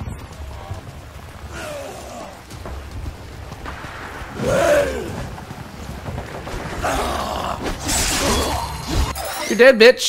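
Weapons clash and hit in a fast fight.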